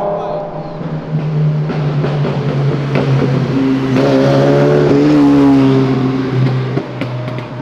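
A motorcycle engine hums and revs as the motorcycle rides along.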